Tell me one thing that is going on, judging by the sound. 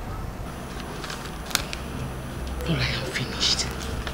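Paper rustles as a woman handles it.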